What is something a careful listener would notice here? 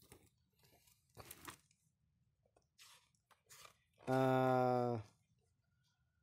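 Paper pages rustle as a booklet is flipped through.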